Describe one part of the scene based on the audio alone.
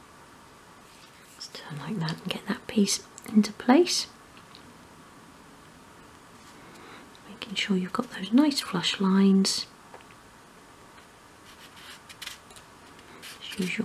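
Small wooden pieces tap and click together on a table.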